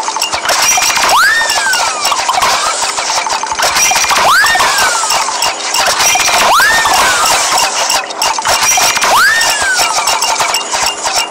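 A cartoon machine makes a swooping squeeze sound again and again.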